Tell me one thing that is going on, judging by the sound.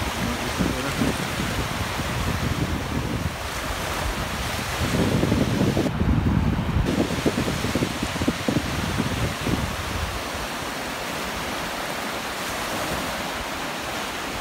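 Waves wash onto a beach.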